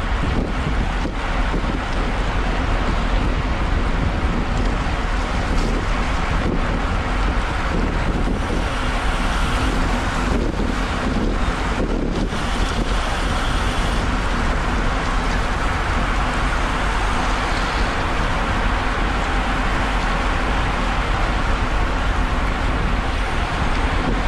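Bicycle chains and gears whir steadily.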